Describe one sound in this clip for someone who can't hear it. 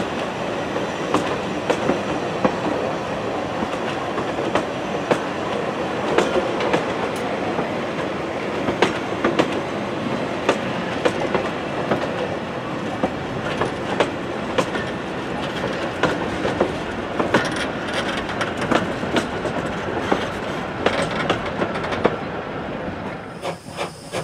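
Railway carriages roll past close by with a steady rumble.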